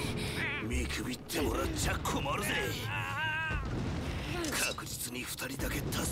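A man speaks in a tense, menacing voice.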